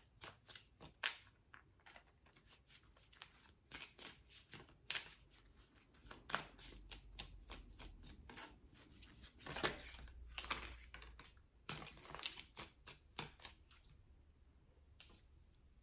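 Cards shuffle and tap softly.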